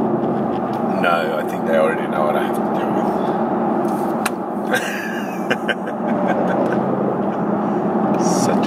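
A man talks and laughs close by.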